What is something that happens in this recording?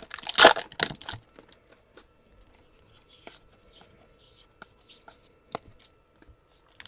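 Trading cards shuffle and rustle against each other.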